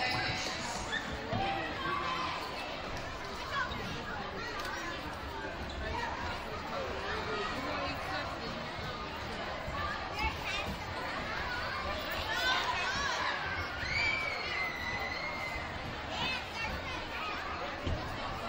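Children squeal and shout excitedly.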